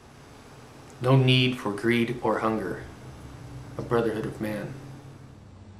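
A man speaks in a low, calm voice close to a microphone.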